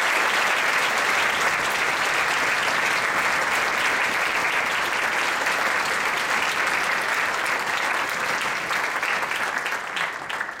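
An orchestra of strings and winds plays a lively piece in a large echoing hall.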